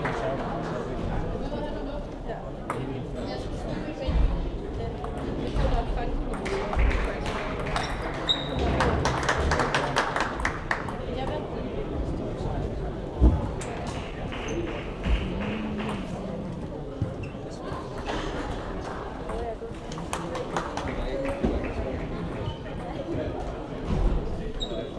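A ping-pong ball clicks back and forth off paddles and a table in a large echoing hall.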